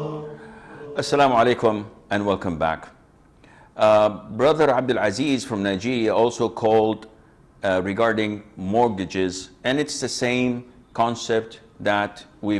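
A middle-aged man speaks calmly and steadily into a microphone.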